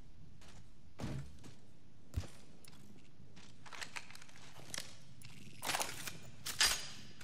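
Gear is picked up with short metallic clicks and rattles.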